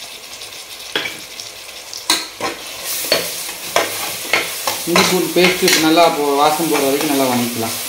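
A metal ladle scrapes and clinks against a pot while stirring.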